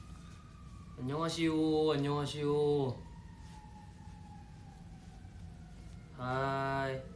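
A young man sings a few drawn-out notes close to a microphone.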